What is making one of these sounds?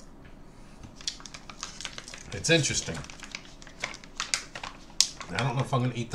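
A plastic wrapper crinkles as a man tears it open.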